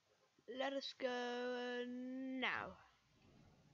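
A boy shouts loudly in a long drawn-out cry.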